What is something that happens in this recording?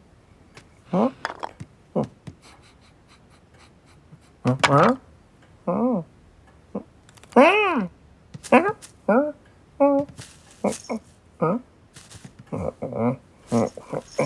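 A cartoon cat meows and mews repeatedly.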